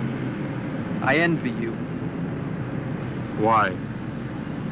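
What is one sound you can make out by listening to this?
A man speaks in short, tense bursts close by.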